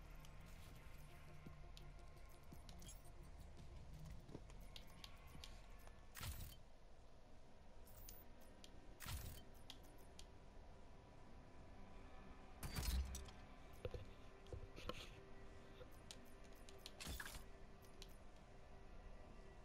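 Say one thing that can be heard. Short electronic menu clicks and swooshes sound now and then.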